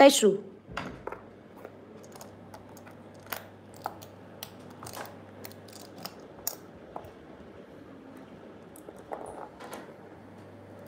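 Small stones click softly against fingernails.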